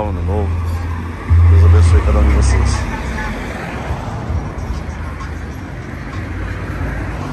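Several men and women chat at a distance outdoors.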